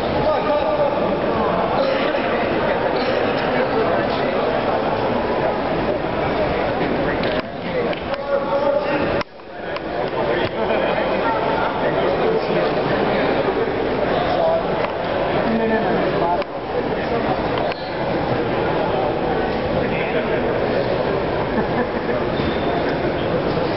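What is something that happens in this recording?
A crowd of spectators talks and cheers loudly in an echoing hall.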